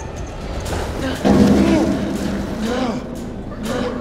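A body crashes heavily onto the floor.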